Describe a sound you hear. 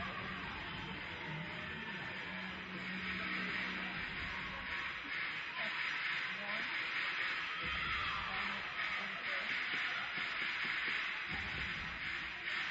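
Spectators murmur and chatter in the stands.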